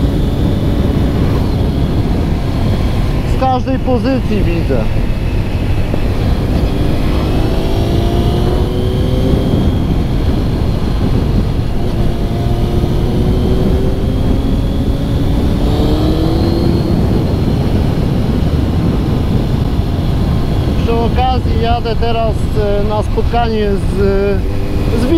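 A motorcycle engine hums and rises in pitch as it speeds up, shifting gears.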